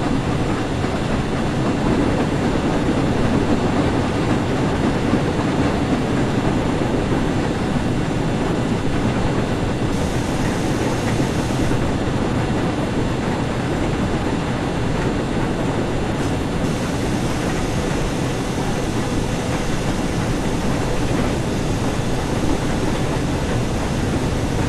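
A steam locomotive rumbles and clatters steadily along the track.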